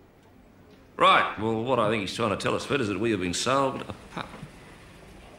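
A middle-aged man speaks sharply close by.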